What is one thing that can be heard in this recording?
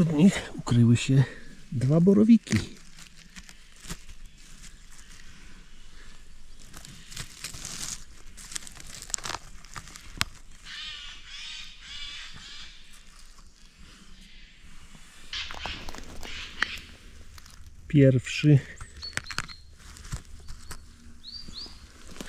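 Dry needles and leaves rustle as a hand pulls mushrooms from the forest floor.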